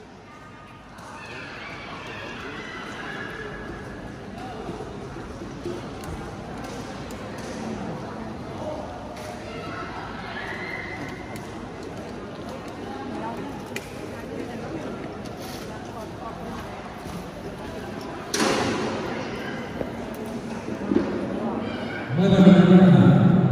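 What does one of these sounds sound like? Men and women murmur and talk in a large echoing hall.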